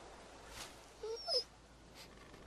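A dog whines briefly.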